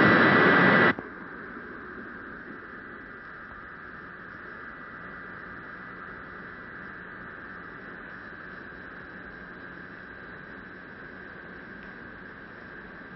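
Control equipment hums steadily.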